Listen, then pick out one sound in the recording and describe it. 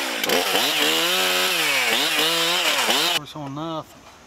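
A chainsaw engine revs loudly up and down.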